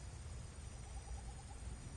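Chunks of rock fly through the air with a low rumble.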